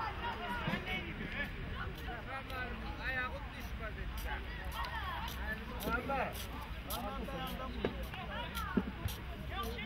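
Young men shout and cheer outdoors.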